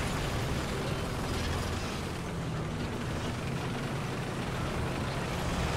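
Tank tracks clank and grind over the ground.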